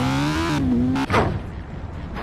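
A motorcycle crashes with a sudden thud.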